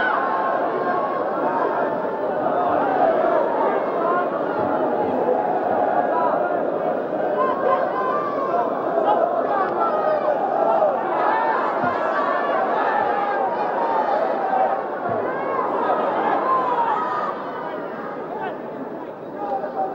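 A large crowd roars and chants steadily in a big open stadium.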